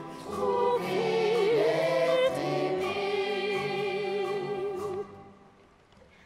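A woman sings with a wavering, operatic voice in a large hall.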